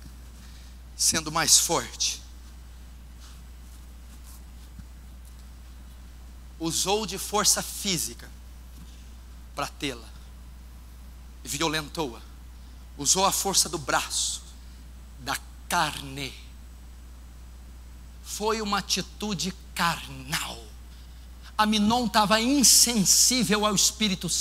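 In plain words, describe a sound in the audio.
A man preaches with animation through a microphone, in bursts with pauses, in a large echoing hall.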